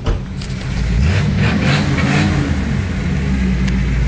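A car engine revs up loudly and settles back down.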